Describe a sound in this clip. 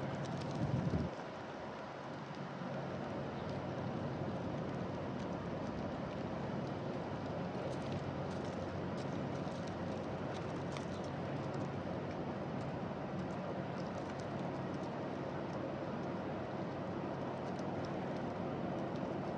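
Doves peck at seeds on hard ground close by, with small sharp taps.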